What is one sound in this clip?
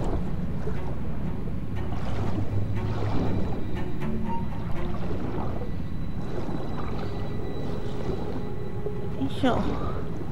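A swimmer's strokes whoosh through the water.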